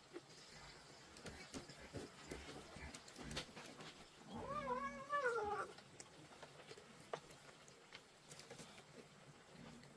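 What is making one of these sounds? Kittens lap and chew food from a bowl.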